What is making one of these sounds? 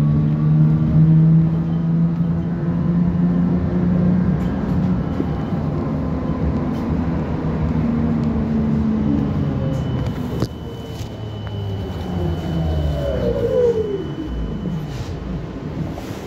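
A tram's electric motor hums and whines, its pitch slowly falling as the tram slows.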